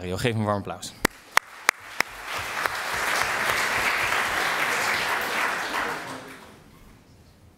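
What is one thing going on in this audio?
An audience applauds and then fades out.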